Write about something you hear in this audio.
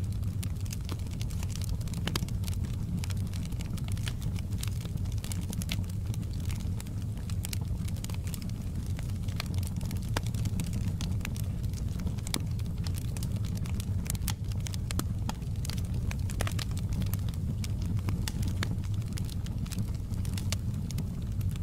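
Flames roar with a low, steady rumble.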